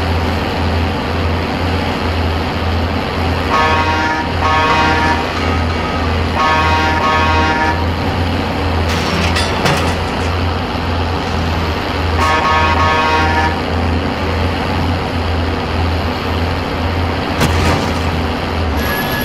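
A heavy truck engine rumbles steadily as the truck drives along.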